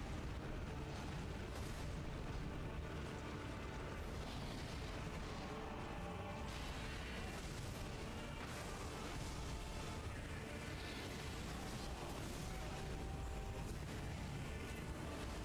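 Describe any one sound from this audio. Swords clash and strike in a loud game battle.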